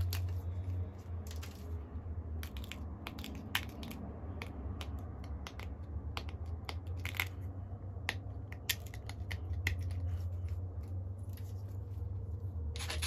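Stone flakes snap off with sharp little clicks as a tool presses the edge.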